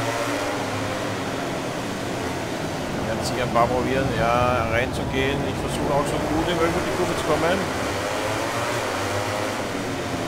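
A motorcycle engine roars at high revs, its pitch rising and falling through gear changes.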